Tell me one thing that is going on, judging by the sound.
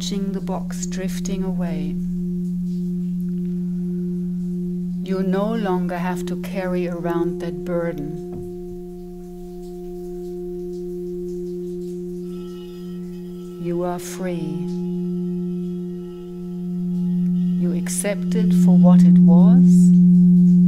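A woman sings softly into a microphone in gliding phrases.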